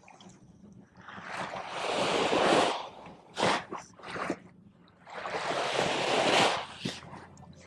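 Small waves wash onto the shore and break.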